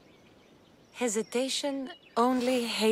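A young woman speaks firmly, close by.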